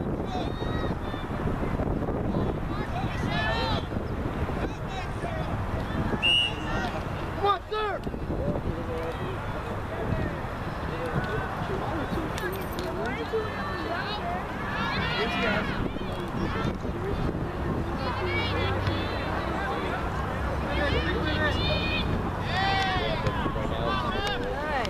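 Young girls shout and call out to each other outdoors.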